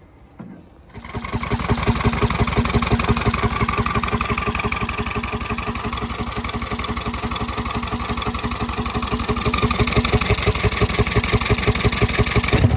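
The small single-cylinder engine of a riding lawn mower starts and idles with a fast, even putter.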